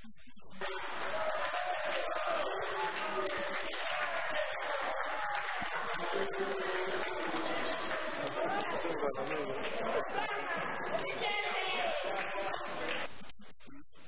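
A crowd of people shouts and chants together in a large echoing hall.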